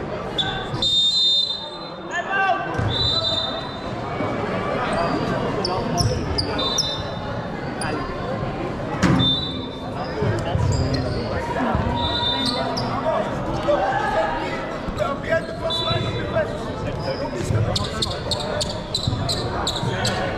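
Young players shout and call out to each other in an echoing hall.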